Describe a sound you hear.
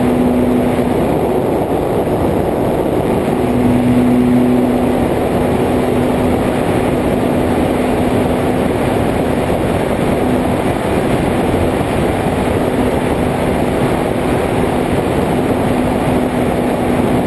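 A small aircraft's engine drones steadily close by.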